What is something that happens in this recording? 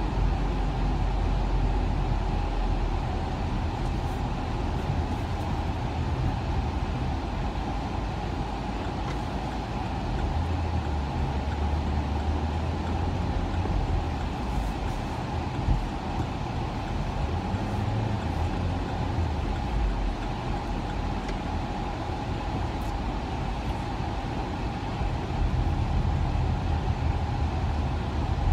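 Tyres roar on a motorway.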